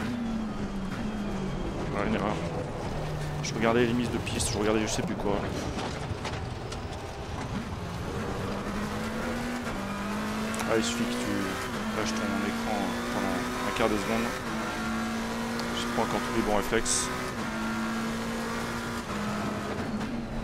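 A race car engine roars steadily, shifting up and down through the gears.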